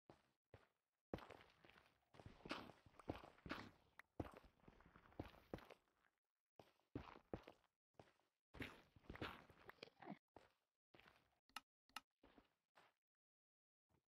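A pickaxe chips and breaks stone blocks in a game.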